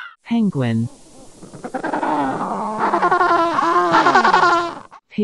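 Penguins bray noisily.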